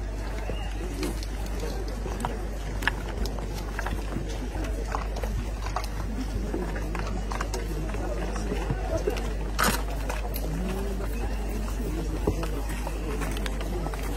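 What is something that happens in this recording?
Footsteps shuffle on dirt and gravel.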